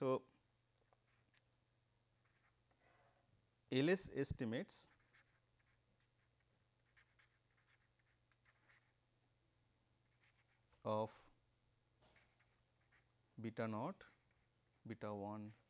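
A marker squeaks and scratches faintly across a board.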